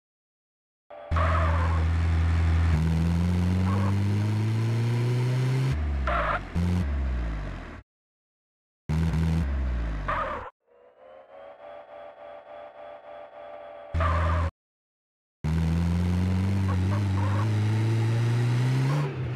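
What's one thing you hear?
A truck engine revs up and down as it drives.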